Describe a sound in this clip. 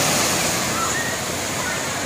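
Water splashes down steadily from a tall tower.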